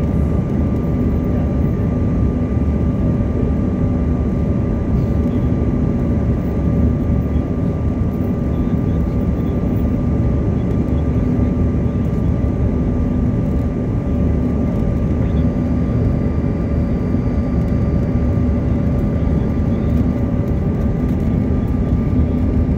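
Jet engines roar steadily inside an airplane cabin in flight.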